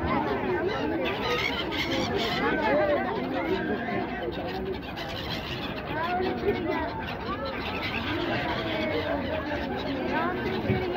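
Many gulls cry and squawk close by.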